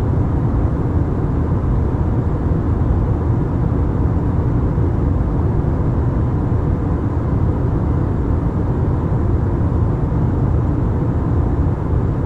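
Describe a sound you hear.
A jet engine roars steadily inside an airliner cabin in flight.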